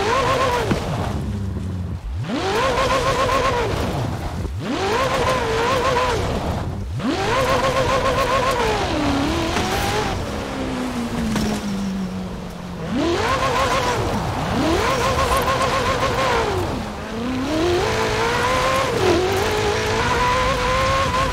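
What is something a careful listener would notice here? Tyres rumble over rough grass.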